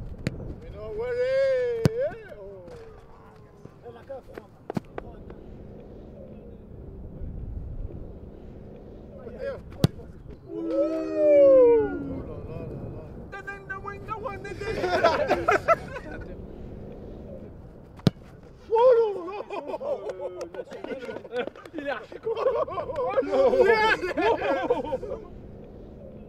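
Young men shout and cheer with excitement outdoors.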